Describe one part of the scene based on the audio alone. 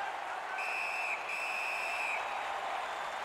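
A referee's whistle blows twice in short shrill blasts.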